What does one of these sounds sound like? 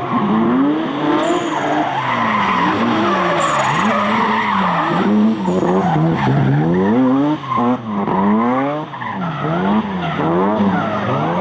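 Car engines rev hard and rise and fall as cars drift around a track.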